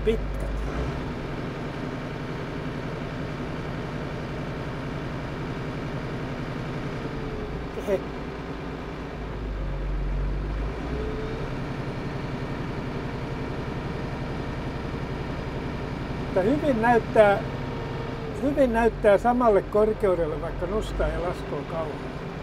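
A tractor engine rumbles steadily inside the cab.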